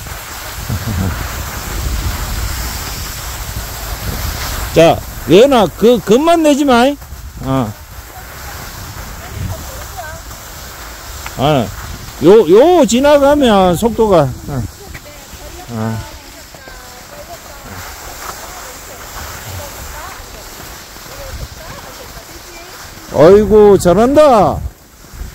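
Skis scrape and hiss over packed snow close by.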